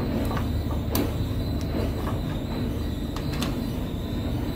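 A metal plate clatters as it is pulled loose.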